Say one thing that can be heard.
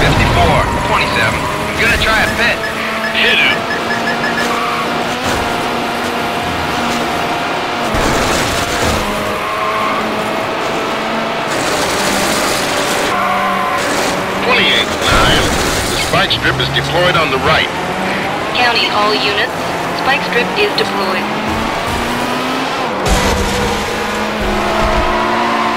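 A racing car engine drones and shifts pitch as it speeds along.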